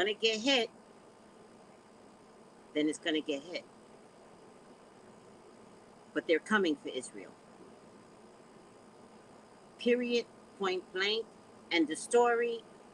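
A woman speaks in short bursts through a microphone on an online call, with pauses between.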